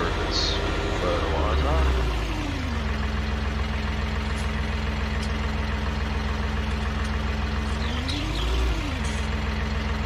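A tractor engine revs up briefly and settles.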